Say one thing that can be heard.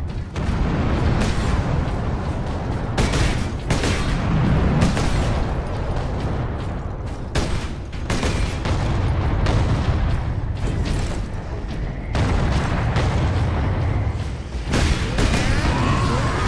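Heavy armoured footsteps thud on the ground.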